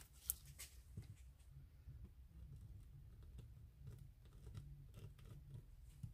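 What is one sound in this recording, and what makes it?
A marker pen scratches lightly across a hard surface.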